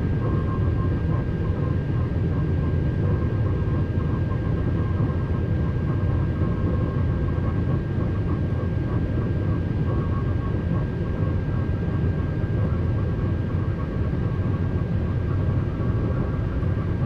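A steady electric whine hums inside a train cab.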